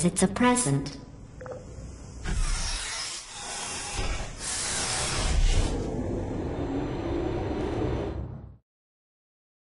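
A lift whirs and rumbles as it rises.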